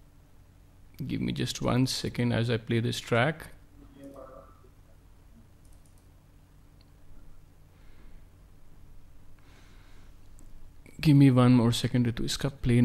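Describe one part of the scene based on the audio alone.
A middle-aged man speaks calmly into a microphone over an online call, with long pauses.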